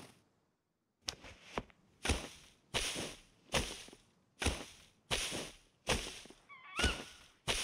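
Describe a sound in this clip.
An axe chops into a tree trunk with repeated heavy thuds.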